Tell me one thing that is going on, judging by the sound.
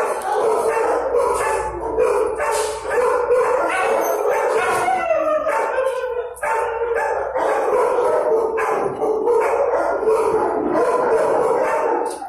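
A dog whines and howls.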